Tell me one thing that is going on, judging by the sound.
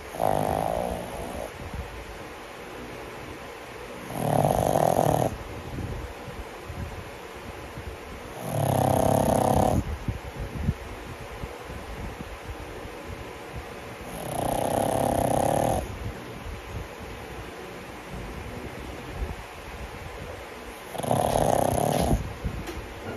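A dog snores loudly in slow, long breaths.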